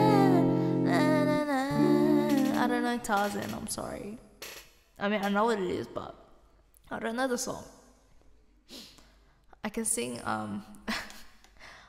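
A young woman talks casually and close into a microphone.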